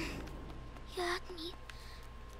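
A young boy speaks in a worried voice.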